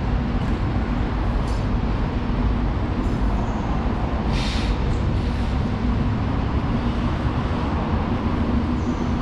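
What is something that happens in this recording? Distant city traffic rumbles steadily.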